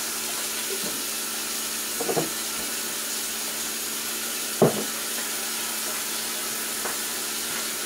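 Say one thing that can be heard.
A cloth rubs softly across a counter.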